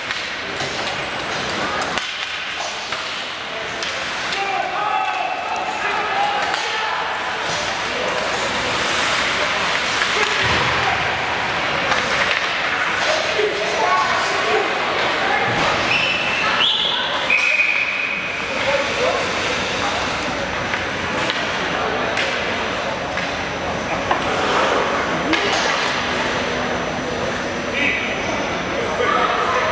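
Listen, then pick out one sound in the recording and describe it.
Hockey skates scrape and hiss across the ice.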